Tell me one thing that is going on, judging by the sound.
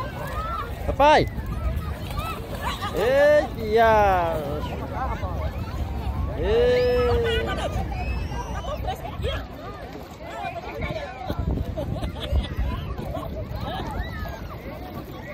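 Water splashes as children play.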